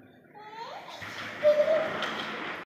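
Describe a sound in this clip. A baby walker's wheels roll across a hard floor.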